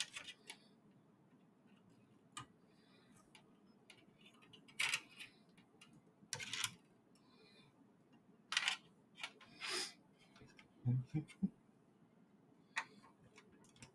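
Small plastic and metal parts click and rattle.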